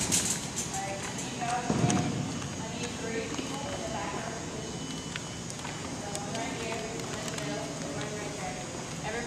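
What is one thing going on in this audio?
A young woman talks in a large echoing hall.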